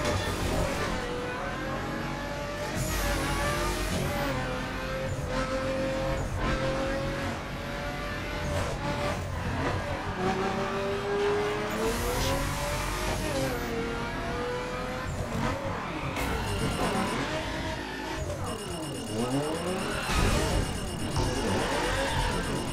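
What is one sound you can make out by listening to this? A car engine roars at high speed, rising and falling as the gears shift.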